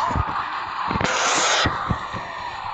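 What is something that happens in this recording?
A fiery blast bursts loudly.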